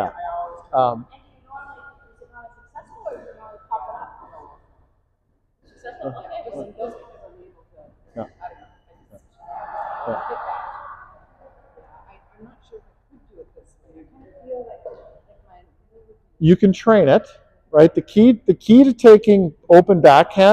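A woman talks calmly at a distance in a large echoing hall.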